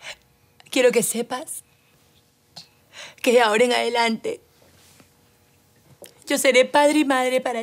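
A young woman talks to a baby in a high, playful voice.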